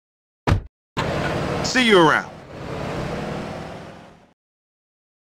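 A pickup truck engine revs and drives away.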